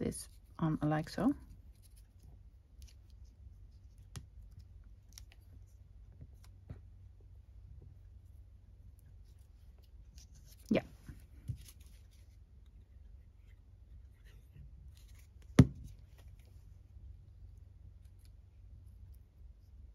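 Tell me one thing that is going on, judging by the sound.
Tweezers tap and scrape lightly on paper.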